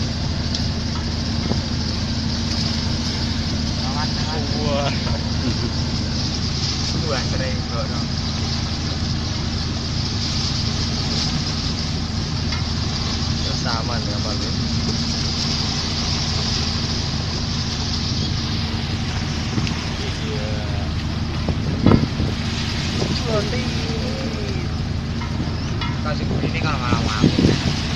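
Strong wind roars steadily over open water.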